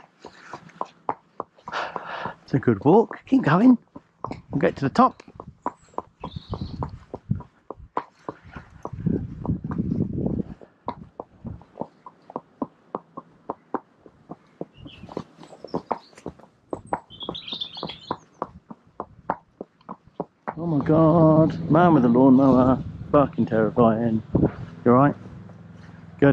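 A horse's hooves clop steadily on a paved lane.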